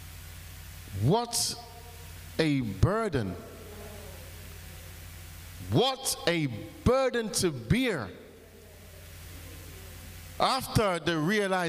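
A man preaches with animation through a microphone and loudspeakers, in bursts with pauses.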